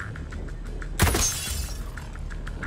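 A suppressed rifle fires a single shot, with a short ringing tail.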